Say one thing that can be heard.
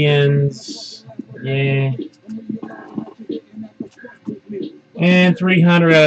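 Trading cards rustle and tap softly as a hand handles them.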